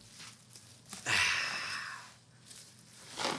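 Bubble wrap crinkles and rustles as it drops onto a table.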